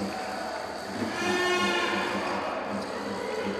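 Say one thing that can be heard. A referee's whistle blows one long blast.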